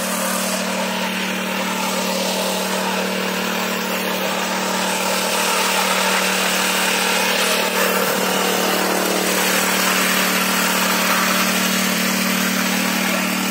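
A small petrol engine runs loudly and steadily close by.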